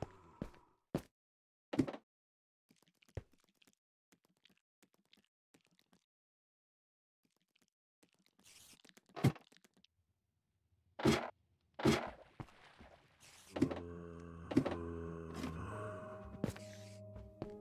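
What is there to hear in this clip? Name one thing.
Stone blocks crack and break with sharp knocks.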